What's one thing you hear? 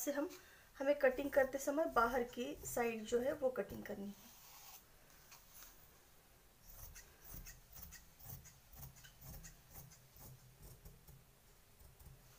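Scissors snip through fabric with soft crunching cuts.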